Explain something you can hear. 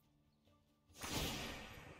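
A bright magical shimmer sounds.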